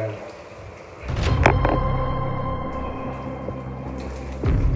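A shower sprays water over a man's head.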